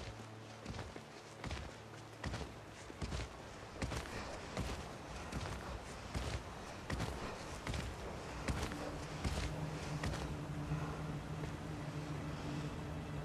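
Footsteps thud on a dirt path.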